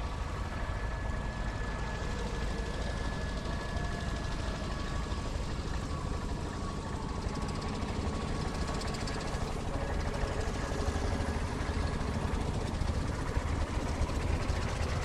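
Tractor engines chug and rumble at a distance.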